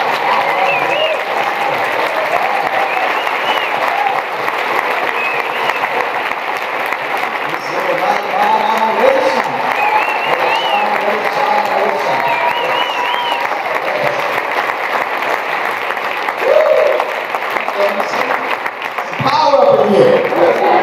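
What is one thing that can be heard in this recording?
Men and women in the crowd cheer and shout with excitement.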